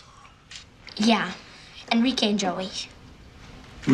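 A young boy speaks quietly and sulkily.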